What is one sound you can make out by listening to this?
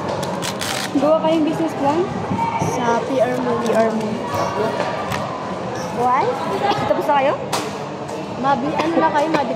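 Young women chat nearby in an echoing hall.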